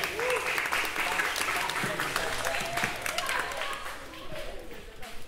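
A small band plays lively music with horns and guitar.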